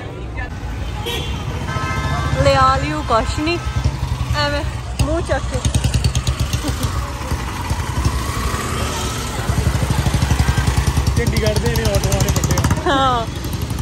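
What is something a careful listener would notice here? Auto rickshaw engines putter nearby.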